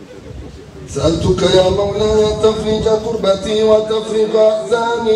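A man chants in a strong, drawn-out voice through a microphone and loudspeaker, outdoors.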